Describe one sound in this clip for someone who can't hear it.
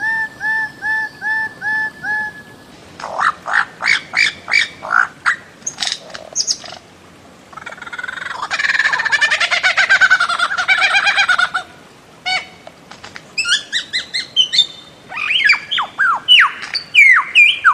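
A bird calls loudly in a series of sharp, repeated whistles and chattering notes.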